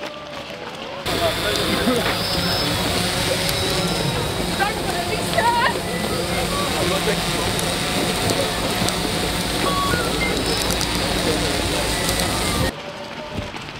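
A crowd of men talk and call out nearby.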